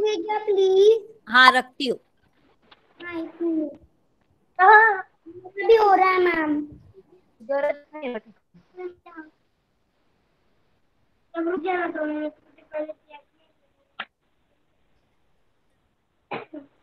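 A young girl speaks with animation over an online call.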